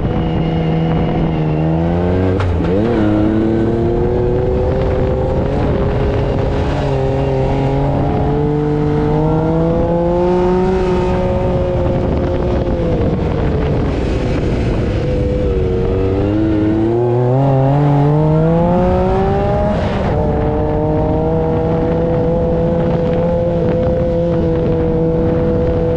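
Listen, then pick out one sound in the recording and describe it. A buggy engine roars close by, its pitch rising and falling as it revs.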